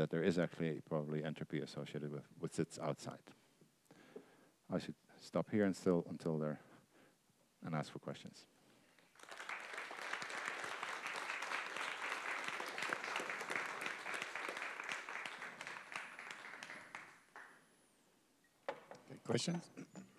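A middle-aged man speaks calmly into a clip-on microphone in an echoing room.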